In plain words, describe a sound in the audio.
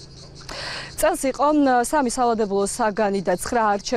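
A young woman speaks into a microphone, reporting clearly outdoors.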